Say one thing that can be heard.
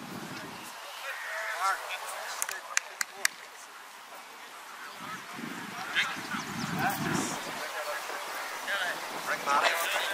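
Young men shout to each other across an open field.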